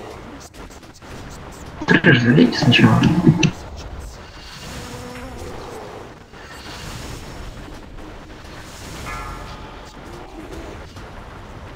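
Spell effects whoosh and crackle in a fight.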